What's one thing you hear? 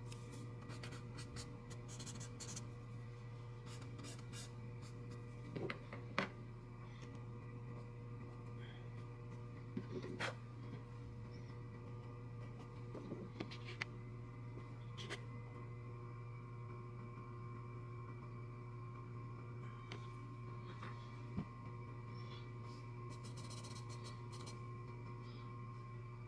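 A pencil scratches and rubs across paper.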